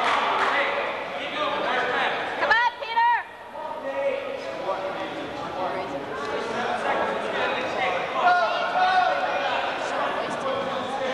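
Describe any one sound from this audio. Wrestlers scuffle and thump on a mat.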